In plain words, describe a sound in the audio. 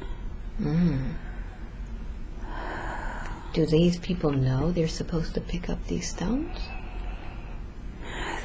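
A woman breathes slowly and softly in her sleep.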